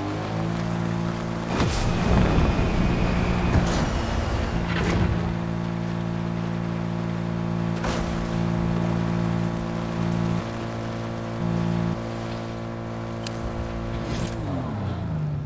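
A car engine drones steadily as a vehicle drives.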